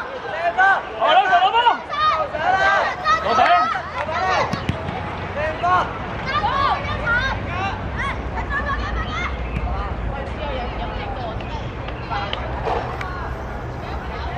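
Children shout and call out excitedly across an open field.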